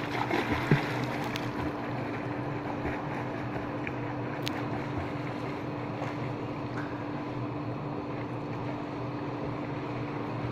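A swimmer splashes through water nearby.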